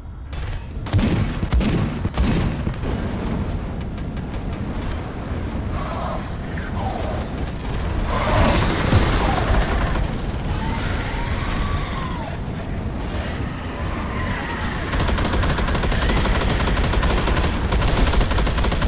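A flamethrower roars steadily.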